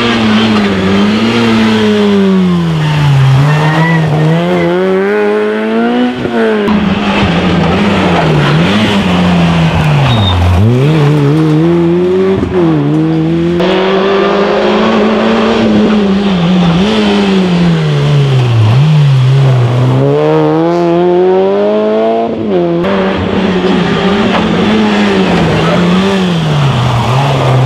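Rally car engines roar and rev hard, the pitch rising and falling through the gears.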